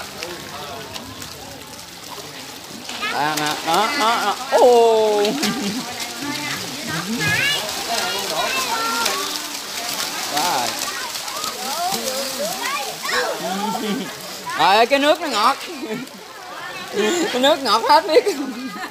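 Many fish splash and thrash at the water's surface.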